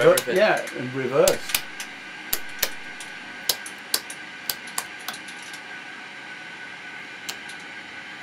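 Switches click as a hand flips them.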